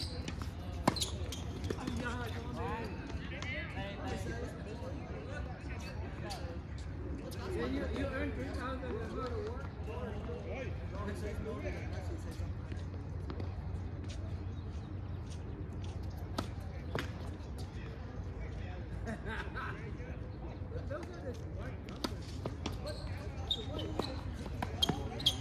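Tennis balls pop off rackets outdoors.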